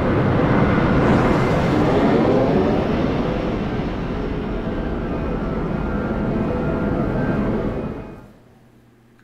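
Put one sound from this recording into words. Huge airship engines roar and rumble loudly.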